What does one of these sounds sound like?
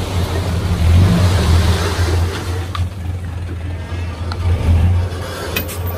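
Loose soil slides and pours out of a tipping truck bed.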